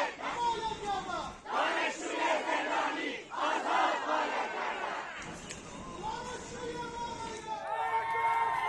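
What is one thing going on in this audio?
A crowd of protesters chants loudly outdoors.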